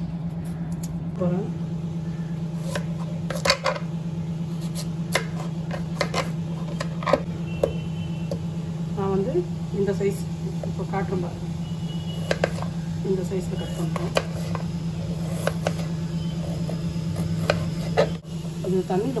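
A knife taps and chops against a cutting board.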